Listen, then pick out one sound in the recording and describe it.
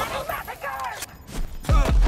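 A rifle magazine is swapped with metallic clicks.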